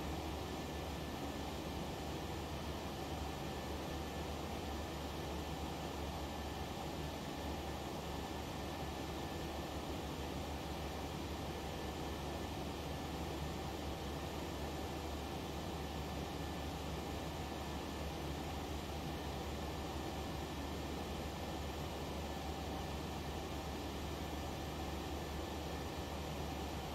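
Jet engines hum and roar steadily from inside an airliner cockpit.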